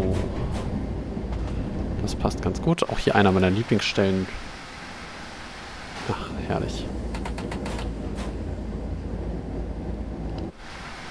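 Rails clatter under a train's wheels.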